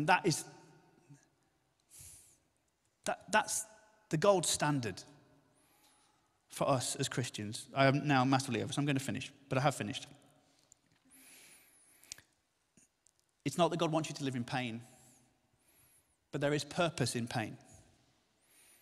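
A middle-aged man speaks calmly into a microphone in pauses, in a reverberant hall.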